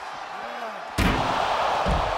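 A heavy body slams onto a hard mat with a loud thud.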